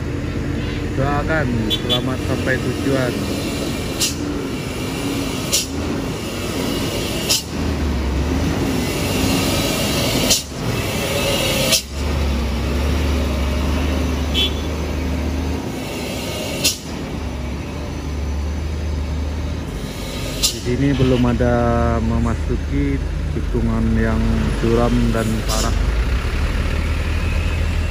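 A heavy truck engine rumbles loudly as the truck drives slowly past close by.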